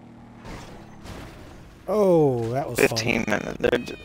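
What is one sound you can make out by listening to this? A motorcycle crashes with a thud.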